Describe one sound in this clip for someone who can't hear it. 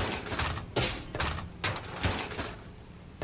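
A metal bar knocks and pries at a wooden panel.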